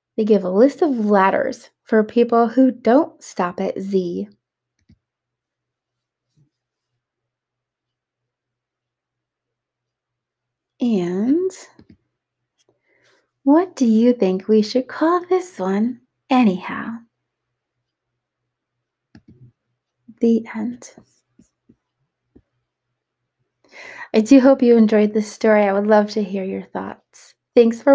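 A young woman reads aloud and talks with animation close to a microphone.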